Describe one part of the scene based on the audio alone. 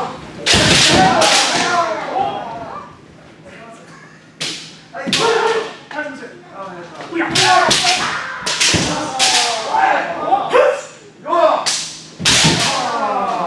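Bamboo swords strike with sharp cracks.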